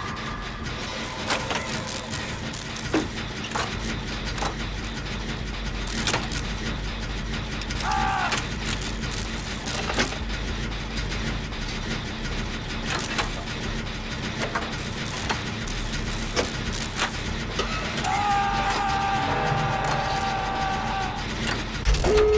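Metal machine parts clank and rattle.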